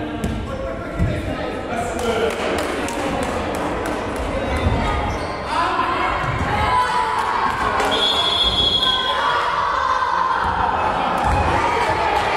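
A ball thumps against hands and the floor.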